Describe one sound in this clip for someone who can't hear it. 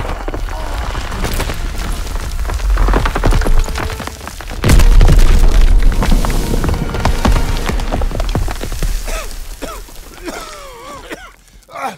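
Debris and rubble crash down.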